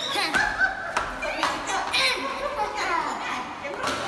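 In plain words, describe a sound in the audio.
A young boy shouts and laughs excitedly close by.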